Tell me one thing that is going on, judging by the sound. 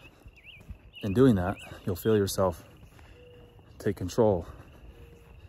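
A young man speaks calmly and close to the microphone, in short bursts.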